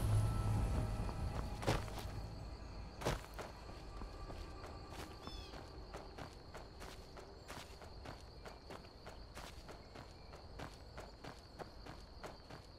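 Footsteps crunch steadily over grass and dry ground.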